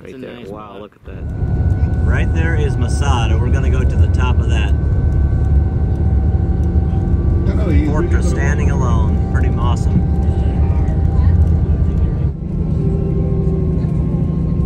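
A car engine hums and rumbles steadily while driving.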